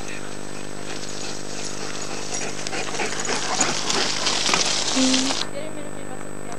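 A mountain bike's tyres crunch over a gravel track as it passes close by.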